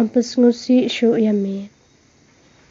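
A woman sings slowly through a microphone.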